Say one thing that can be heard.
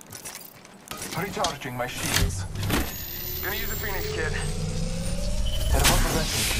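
A shield battery charges with a rising electric hum.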